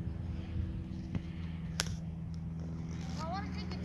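A soccer ball thumps as it is kicked on grass.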